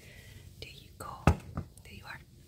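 A bowl knocks down on a hard floor.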